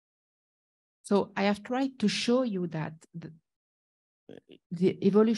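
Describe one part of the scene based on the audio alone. A man lectures calmly, heard over an online call.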